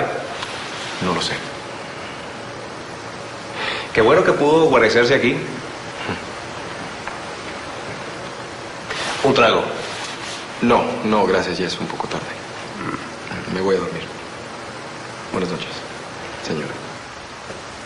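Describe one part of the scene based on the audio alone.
A man speaks forcefully and with animation, close by.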